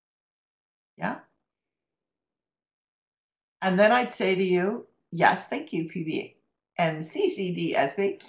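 A middle-aged woman speaks calmly through an online call.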